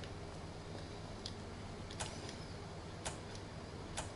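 Switches click as they are flipped.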